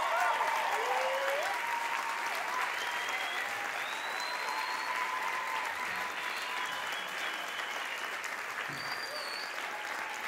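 A group of young men and women sings with long, gliding, wavering notes in a large hall.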